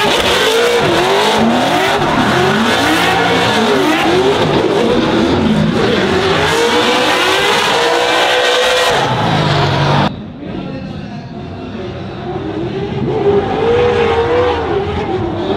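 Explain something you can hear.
Car engines rev hard, rising and falling in pitch.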